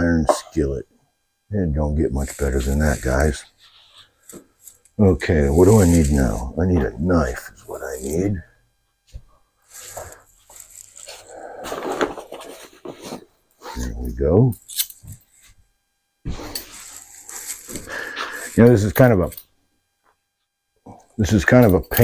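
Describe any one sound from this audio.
An elderly man talks with animation close by.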